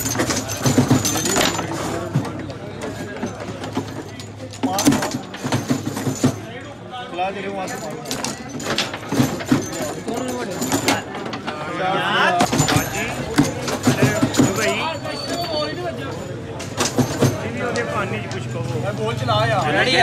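A foosball ball knocks and clacks against plastic players and the table walls.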